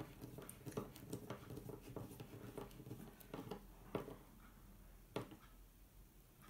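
A screwdriver turns a screw into wood with small scraping clicks.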